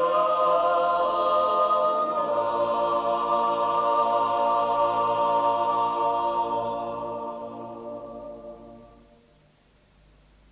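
A men's choir sings in harmony and fades out.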